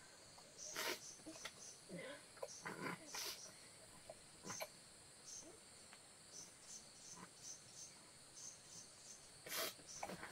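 A cloth blanket rustles as it is shaken out and wrapped around a baby.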